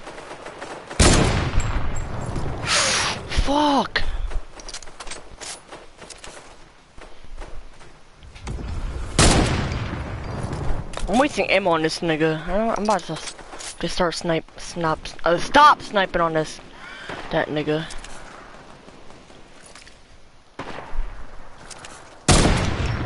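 A rifle fires loud single shots, each followed by a short ringing echo.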